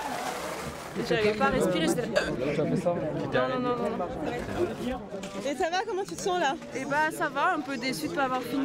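A young woman talks and laughs cheerfully nearby.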